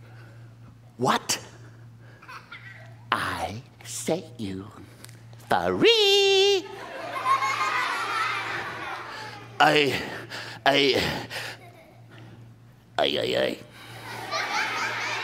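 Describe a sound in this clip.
A man performs with animated, expressive vocal sounds.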